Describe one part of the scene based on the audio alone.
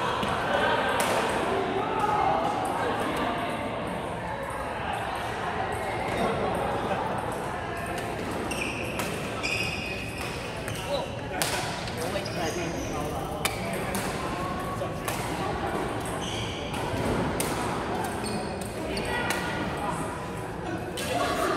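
Badminton rackets smack a shuttlecock in sharp pops.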